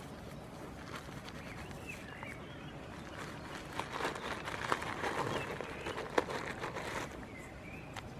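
A goat nibbles and snuffles at a pocket.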